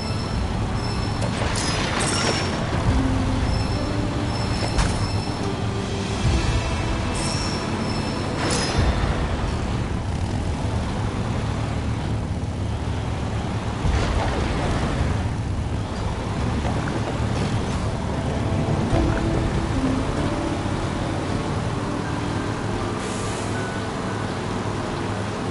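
Tyres crunch over gravel and rocks.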